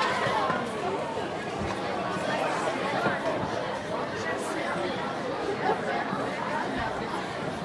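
A crowd of men and women talks and shouts with animation.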